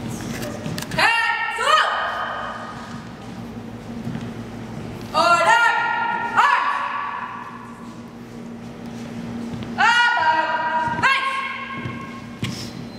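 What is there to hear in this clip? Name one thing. Young men shout commands loudly in a large echoing hall.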